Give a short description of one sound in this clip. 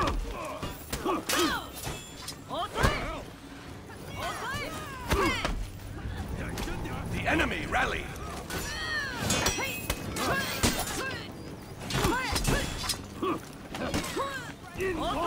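Swords clash with sharp metallic clangs.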